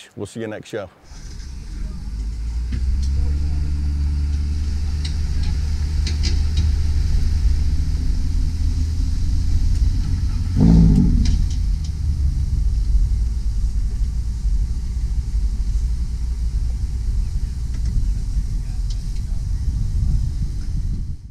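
Wind roars loudly across the microphone.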